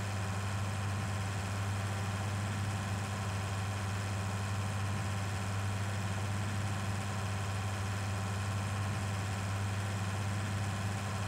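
A tractor engine hums steadily as it drives along.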